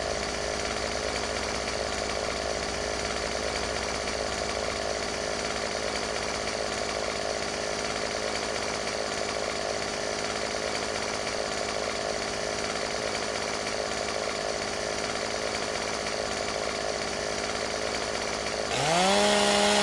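A chainsaw engine idles with a steady drone.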